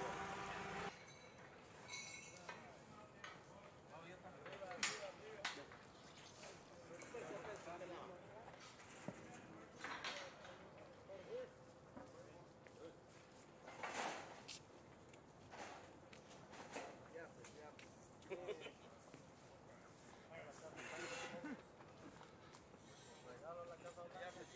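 Metal fence panels clank and rattle as they are moved.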